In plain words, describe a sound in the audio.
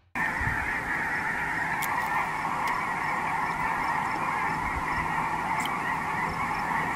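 A huge flock of geese honks and clamors overhead in a dense, steady chorus.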